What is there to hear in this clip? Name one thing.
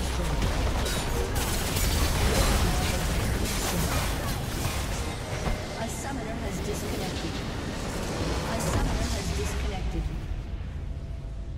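Magic blasts and explosions crash in a busy game battle, then fade to quiet.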